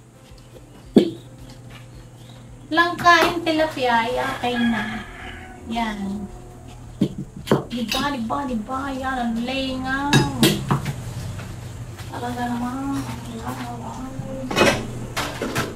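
Dishes clink against a table.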